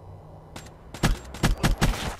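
Rapid gunshots fire in a quick burst.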